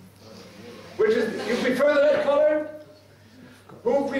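A man speaks through loudspeakers in a large echoing hall.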